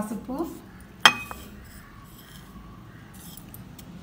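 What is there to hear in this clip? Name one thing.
A spoon scrapes and taps against a plate.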